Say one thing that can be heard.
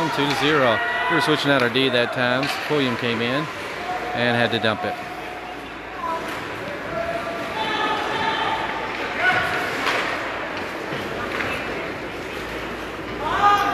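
Spectators talk and shout in an echoing ice rink.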